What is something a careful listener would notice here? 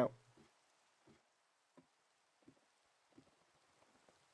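Footsteps clatter on a wooden ladder.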